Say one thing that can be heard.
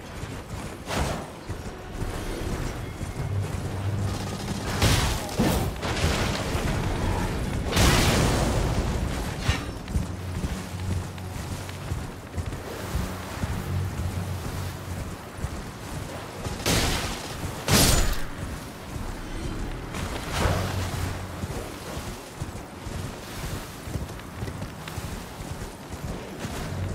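Hooves thud steadily as a horse gallops over grass.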